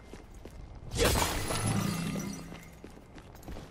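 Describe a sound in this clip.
A floor cracks and collapses with a loud crash.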